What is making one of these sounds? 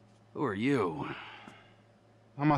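A man asks a question in a low voice, close by.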